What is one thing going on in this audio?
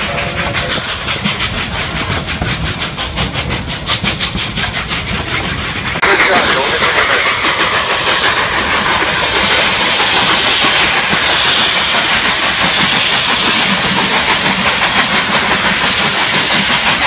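A steam locomotive chuffs in quick, steady beats.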